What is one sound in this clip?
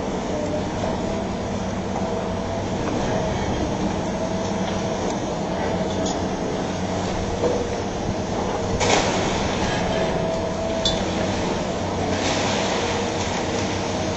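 Concrete and masonry crack and crumble as a demolition excavator tears at a wall.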